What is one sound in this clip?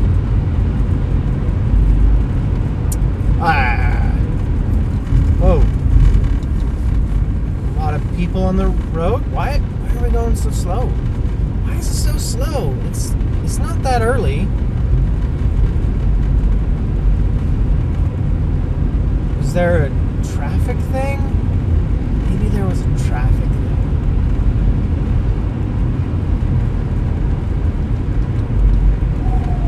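A car rumbles steadily along a road.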